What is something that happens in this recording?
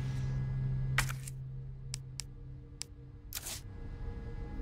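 Short electronic beeps sound from a menu.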